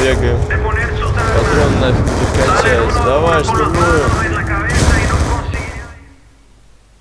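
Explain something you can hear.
Gunfire rattles loudly.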